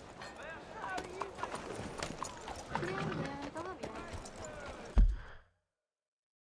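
Horse hooves clop on a cobbled street.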